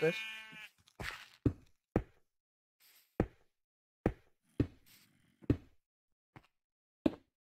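Blocks are placed with short, dull knocks, one after another.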